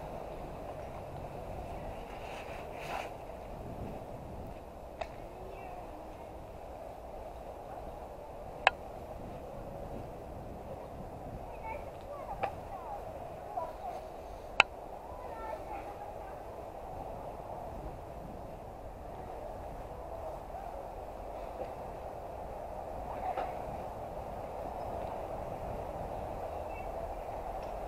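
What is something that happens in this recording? Bicycle tyres roll steadily over asphalt.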